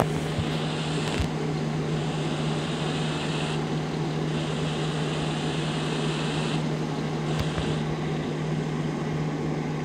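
A truck simulator game's engine drones steadily.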